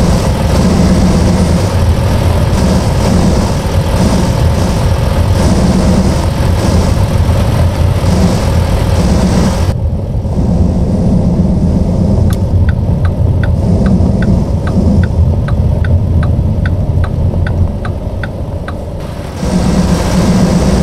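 A truck engine rumbles and drones steadily.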